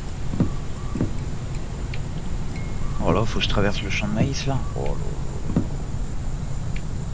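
Footsteps crunch on a gravel path outdoors.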